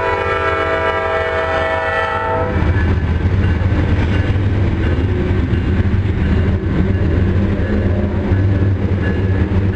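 A freight train rumbles past loudly, its wheels clattering on the rails.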